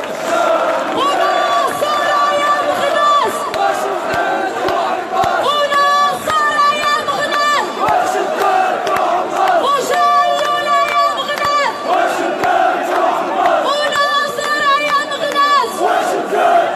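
A young woman sings into a microphone over a loudspeaker.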